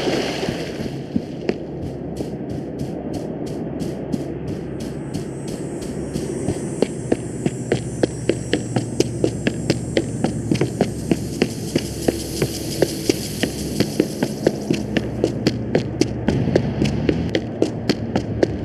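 Footsteps thud quickly and evenly on a road.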